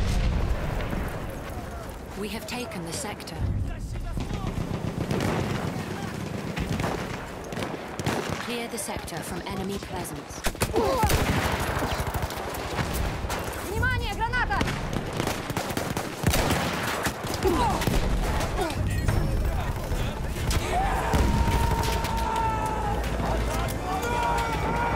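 Rifle shots crack loudly with a ringing echo.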